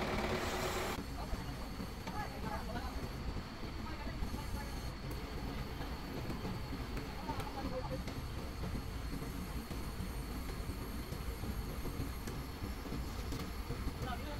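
A truck's engine idles with a steady low rumble.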